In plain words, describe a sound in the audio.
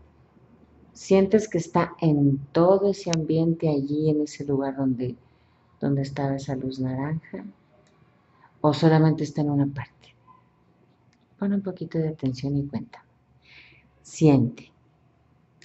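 A woman speaks close by, in short bursts with pauses.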